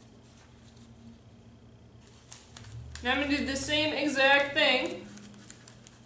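Plastic wrap crinkles as it is pressed and folded by hand.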